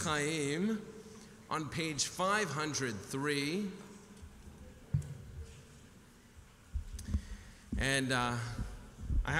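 A man chants in a singing voice through a microphone in an echoing hall.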